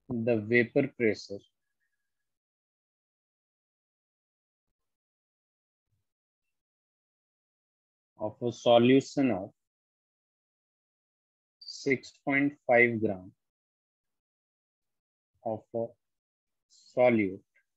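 A man speaks calmly and slowly into a close microphone, with long pauses.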